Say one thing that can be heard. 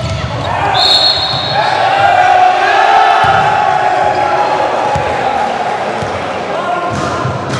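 A crowd cheers loudly in a large echoing hall.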